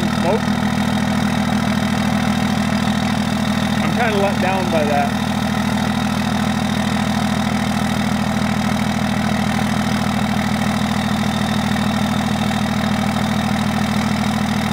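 A pickup truck's engine idles with a steady, low rumble.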